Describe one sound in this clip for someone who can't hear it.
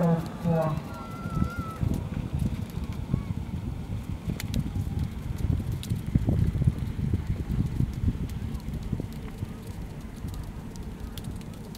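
Reindeer hooves thud faintly on packed snow in the distance.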